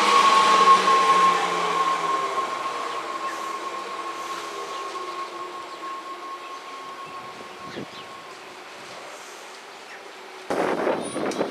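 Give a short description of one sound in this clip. A train pulls away with a steady electric whine that slowly fades.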